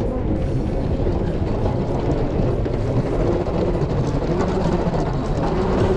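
Suitcase wheels roll along a moving walkway.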